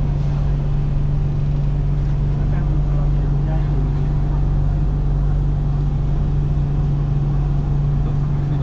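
A train hums steadily as it pulls slowly through a station.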